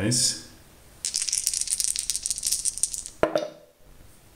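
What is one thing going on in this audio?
Dice rattle and roll across a felt-lined wooden tray.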